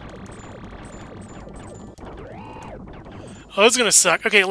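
Electronic game sound effects whoosh and chirp.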